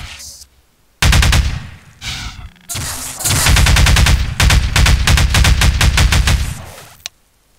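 A plasma gun fires rapid crackling bursts.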